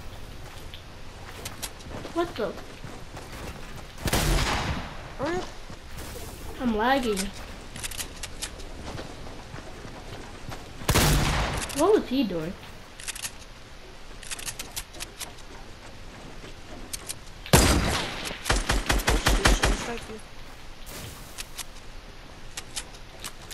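A gun fires rapid shots in bursts.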